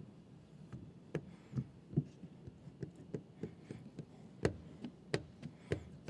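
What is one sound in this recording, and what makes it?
A plastic squeegee squeaks and scrapes against a wet car window.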